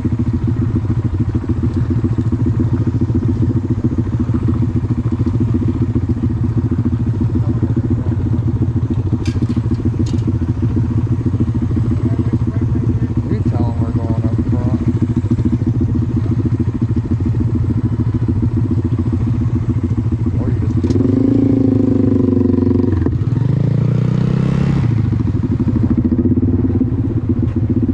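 A motorcycle engine idles steadily up close.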